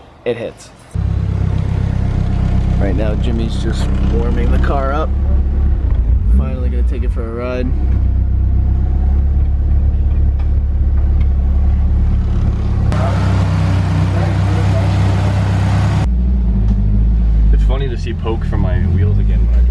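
A car engine starts and idles with a deep, steady rumble.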